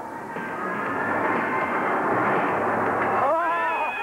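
A young man screams loudly.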